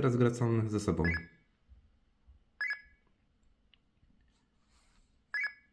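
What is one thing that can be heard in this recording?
A handheld electronic chess game gives short double beeps.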